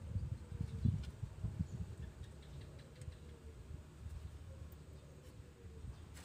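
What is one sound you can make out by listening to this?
Metal parts click and tap as a diesel fuel injection pump is worked on by hand.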